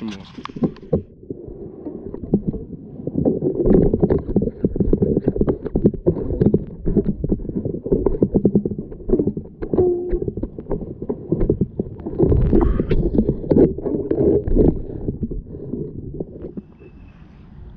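Water gurgles and swirls close by.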